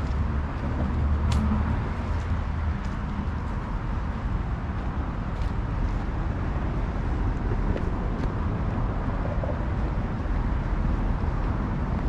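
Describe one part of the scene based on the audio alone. Wind rumbles steadily outdoors.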